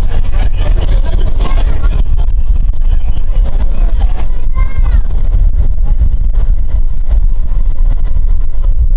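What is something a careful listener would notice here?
A train rumbles and clatters steadily along the tracks.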